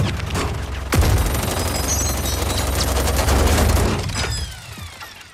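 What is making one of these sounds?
A rotary machine gun fires in a long, rapid roar.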